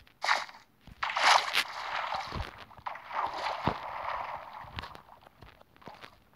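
Sand crunches as it is dug with a pickaxe.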